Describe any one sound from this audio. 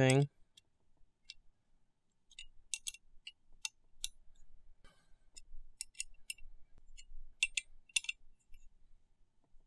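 Small metal parts click and clink sharply, close by.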